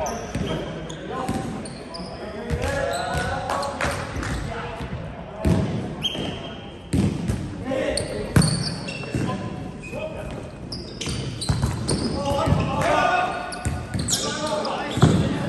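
Sneakers squeak on a wooden floor.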